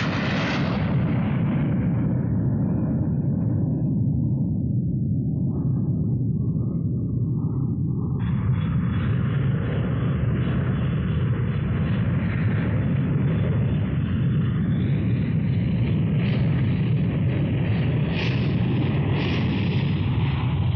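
A jet airliner's engines roar loudly as it climbs away.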